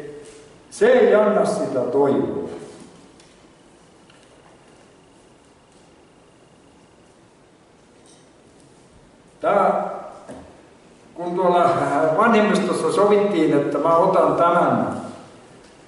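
An elderly man speaks calmly through a microphone, with pauses.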